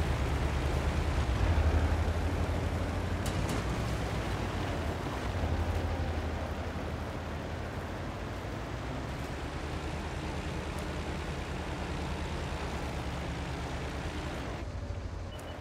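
A tank engine rumbles deeply as the tank drives.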